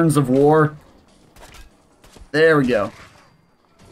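Gunshots fire in a video game.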